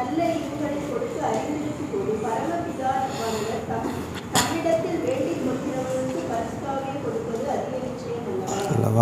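A man reads aloud steadily into a microphone, heard through a loudspeaker.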